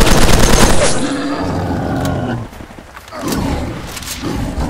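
Metal clicks and clatters as a rifle is reloaded.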